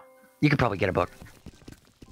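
A man speaks briefly and loudly into a close microphone.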